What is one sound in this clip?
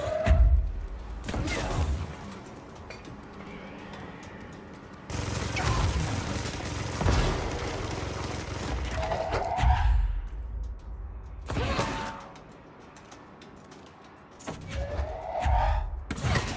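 Heavy objects crash and clatter as they are thrown.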